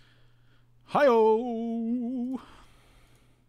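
A man speaks briefly and with a long, drawn-out voice close to a microphone.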